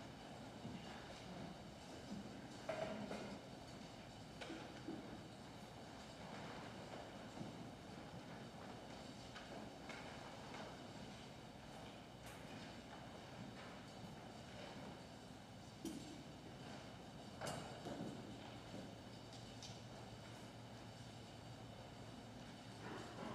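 Footsteps and soft knocks sound in a large echoing room.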